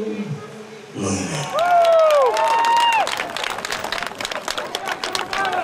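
A crowd claps and applauds outdoors.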